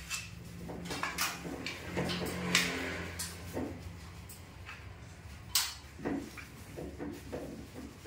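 A pencil scratches along a wall.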